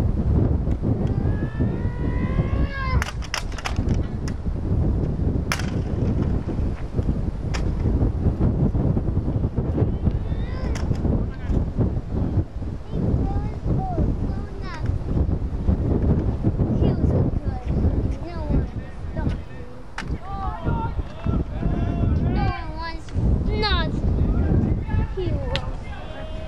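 Wind blows roughly outdoors.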